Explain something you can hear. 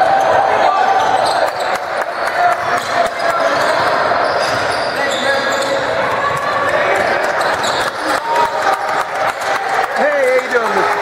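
Young men call out to each other in a large echoing gym.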